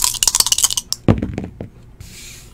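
Dice drop and tumble onto a table with a thud.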